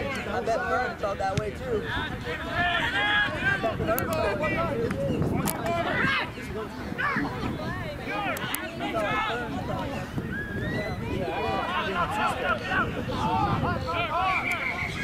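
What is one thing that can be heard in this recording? Several men shout and call out across an open field.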